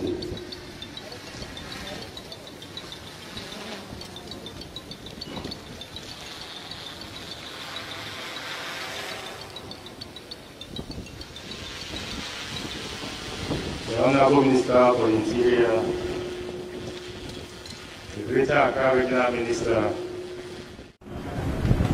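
A man reads out calmly through a microphone and loudspeakers.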